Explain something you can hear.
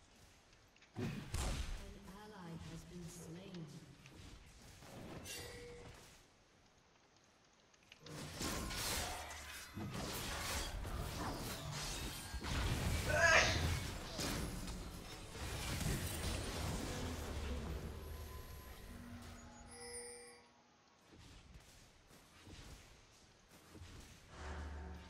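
Video game combat effects crackle and boom.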